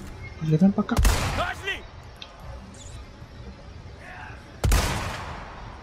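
A rifle shot cracks sharply.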